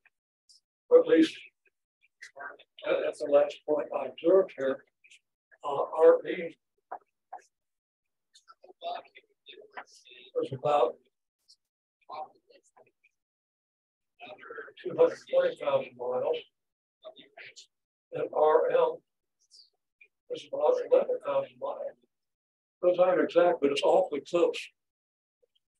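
An elderly man speaks calmly in bursts, close to the microphone, with pauses in between.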